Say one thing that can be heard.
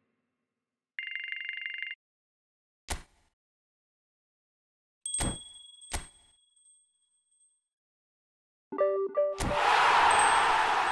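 Short electronic chimes and clicks sound.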